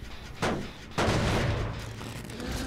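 A metal machine clanks and rattles as it is struck.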